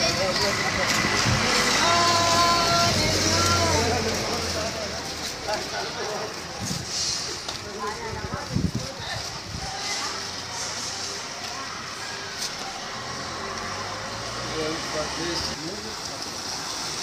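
Men talk loudly nearby outdoors.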